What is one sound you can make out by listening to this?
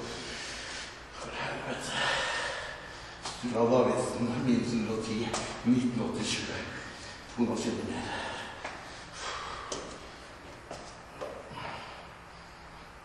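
A man talks nearby in a casual voice.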